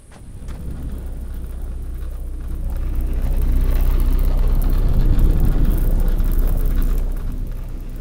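Blasts burst and crackle in quick succession.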